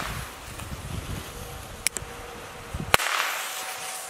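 A firecracker fuse fizzles and sputters.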